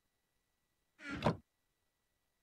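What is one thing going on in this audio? A wooden chest in a video game thuds shut.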